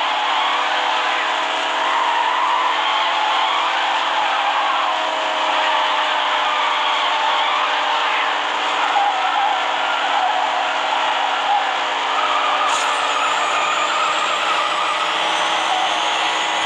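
A car engine roars at high revs throughout.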